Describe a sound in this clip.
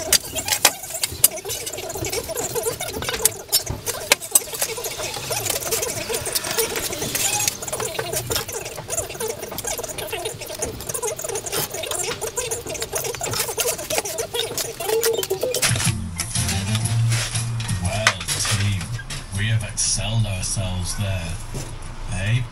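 A trowel scrapes and taps against concrete blocks.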